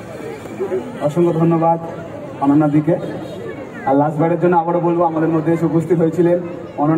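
A man sings through a microphone over loudspeakers.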